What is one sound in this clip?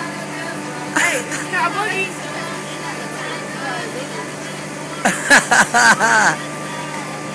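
A young woman laughs and shouts excitedly close by.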